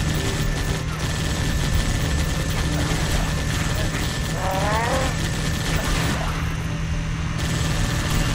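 Vehicle engines rumble and roar.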